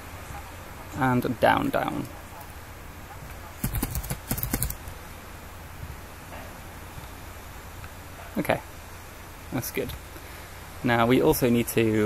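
A young man talks calmly into a nearby microphone, in short bursts.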